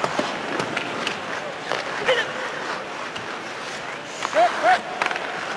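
Hockey sticks clack against a puck.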